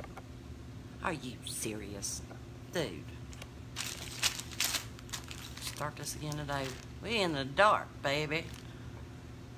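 A middle-aged woman speaks calmly and close to the microphone.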